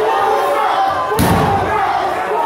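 A wrestler lands with a heavy thud on the ring mat.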